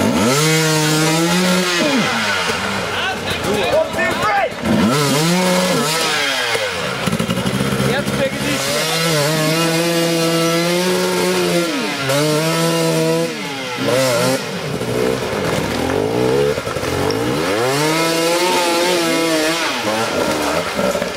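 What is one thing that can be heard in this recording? A dirt bike engine revs hard, rising and falling in bursts.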